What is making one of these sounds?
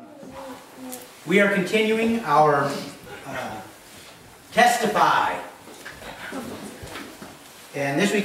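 A middle-aged man speaks calmly to an audience.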